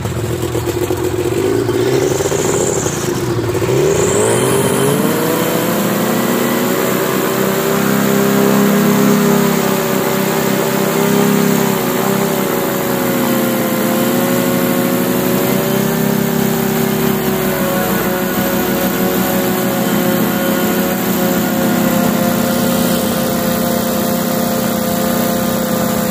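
A small propeller engine revs up and then drones loudly and steadily.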